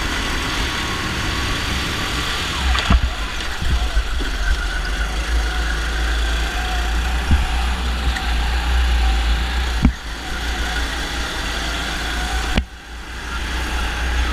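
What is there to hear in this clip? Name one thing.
A small kart engine buzzes loudly up close, rising and falling as it speeds up and slows down.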